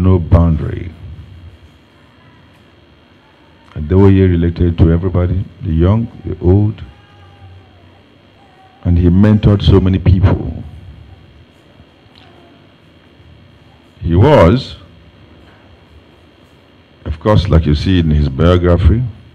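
A man speaks into a microphone over a loudspeaker, in short phrases with long pauses.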